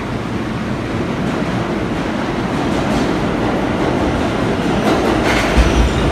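A subway train approaches with a growing rumble.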